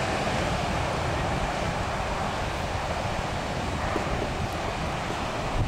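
Waves wash onto the shore in a steady rush.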